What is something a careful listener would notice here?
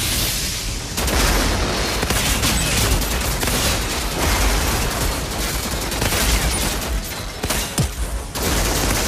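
A gun fires rapid bursts of shots.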